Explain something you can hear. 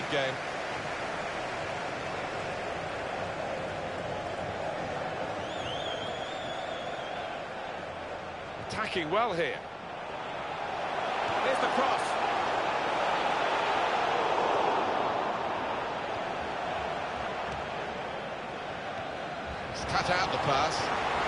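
A large stadium crowd roars steadily, swelling louder for a while.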